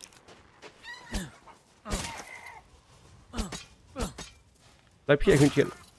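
A knife slashes through the air.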